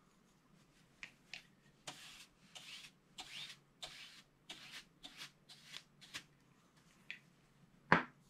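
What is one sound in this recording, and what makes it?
A brush sweeps across paper in quick strokes.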